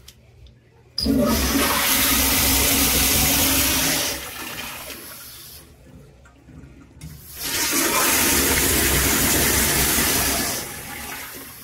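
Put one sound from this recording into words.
A toilet flushes with a loud rushing roar of water.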